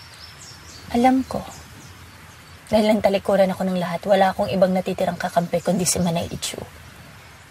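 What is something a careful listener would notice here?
Another young woman answers calmly and close by.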